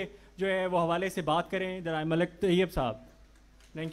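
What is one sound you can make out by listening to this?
A man speaks forcefully into a microphone, amplified through loudspeakers.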